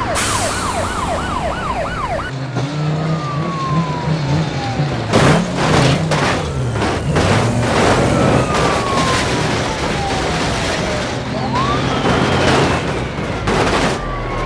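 A truck engine rumbles.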